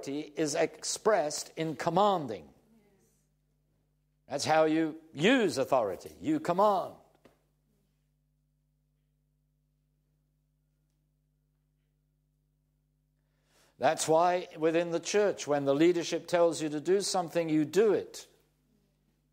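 An elderly man speaks calmly and clearly into a close microphone, with pauses.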